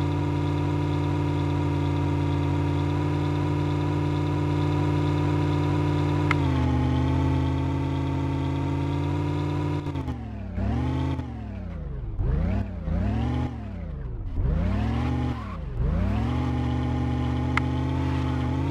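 An off-road vehicle's engine hums steadily, then revs up and down in surges.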